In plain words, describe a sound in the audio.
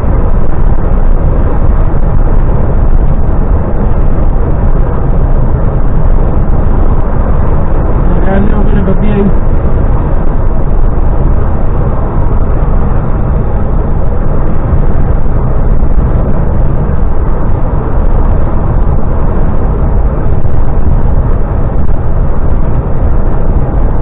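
Wind rushes past a moving vehicle.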